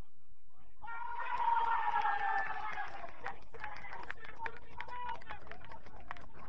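Men cheer loudly in celebration outdoors.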